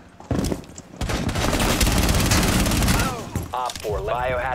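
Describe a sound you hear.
Gunshots fire in rapid bursts at close range.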